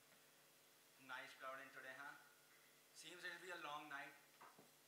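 A man speaks clearly from a distance, in an echoing hall.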